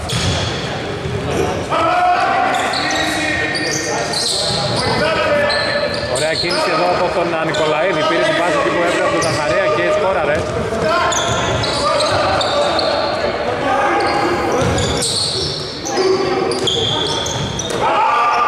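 Sneakers squeak on a wooden floor in an echoing hall.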